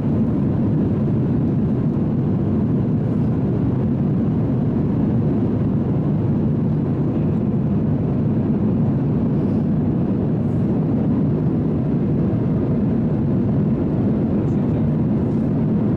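A jet airliner's engines drone steadily and low inside the cabin.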